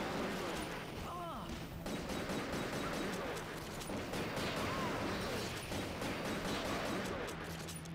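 A helicopter's rotor thuds overhead.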